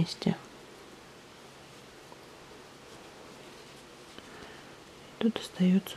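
A crochet hook softly rustles through fluffy yarn.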